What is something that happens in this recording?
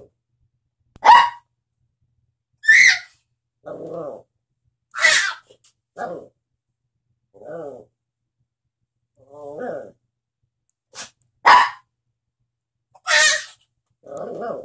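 A small dog barks in short sharp bursts.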